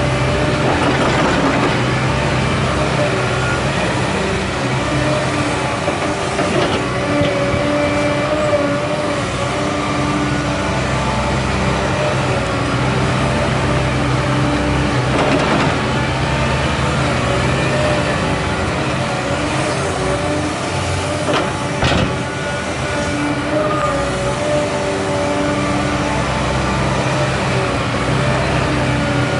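A diesel excavator engine rumbles steadily and whines as its hydraulics work.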